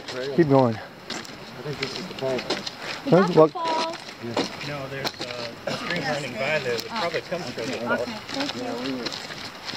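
Adults talk with animation close by, outdoors.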